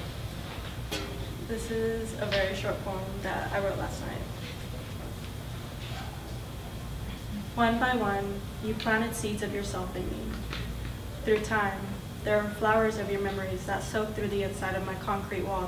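A young woman speaks calmly into a microphone, reading out.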